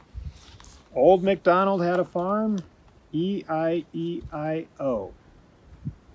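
A man reads aloud calmly, close by.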